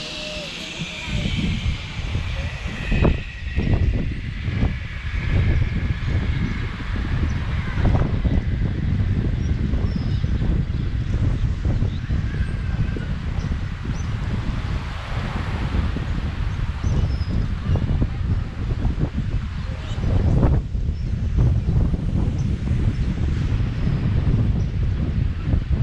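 Wind rumbles and buffets against a microphone outdoors.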